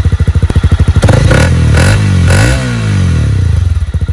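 A motorcycle engine revs up and down.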